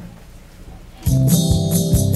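An ocarina plays a melody.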